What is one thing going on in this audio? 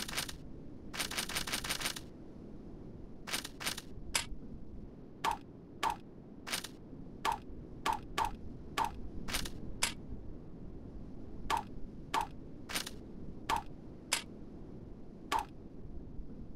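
Short game menu click sounds ring out again and again as items are bought.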